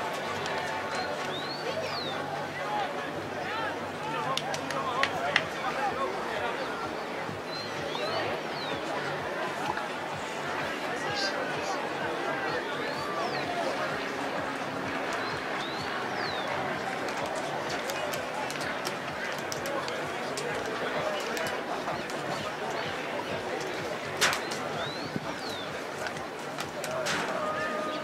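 Players shout to each other across an open field, heard from a distance.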